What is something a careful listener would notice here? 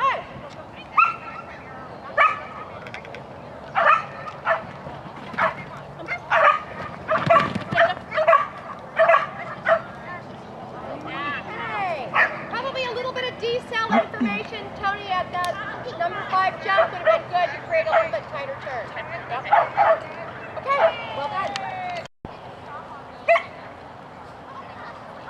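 A woman calls out short, sharp commands outdoors.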